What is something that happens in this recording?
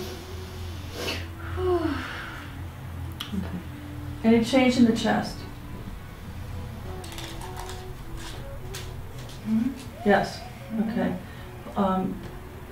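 A woman speaks calmly nearby, in short phrases.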